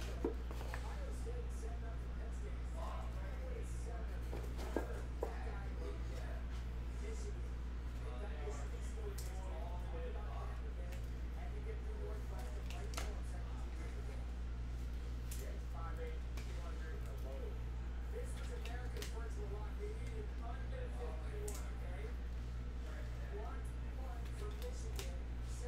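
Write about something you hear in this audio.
Cards and packaging rustle and click in a man's hands.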